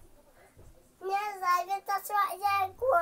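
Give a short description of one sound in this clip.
A small child sings loudly and close by in a high voice.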